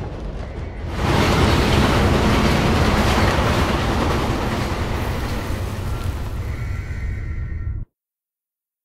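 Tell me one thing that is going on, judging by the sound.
A train rumbles past in an echoing tunnel.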